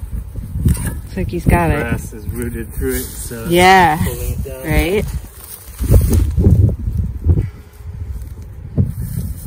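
A spade cuts and scrapes into soil with dull thuds.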